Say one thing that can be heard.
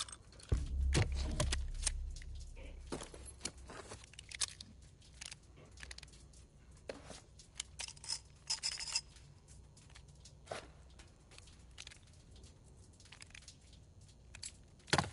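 Metal parts of a revolver click and clack as it is handled and assembled.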